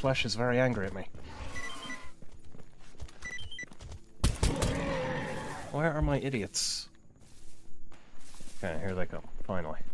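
Footsteps crunch through dry grass and reeds.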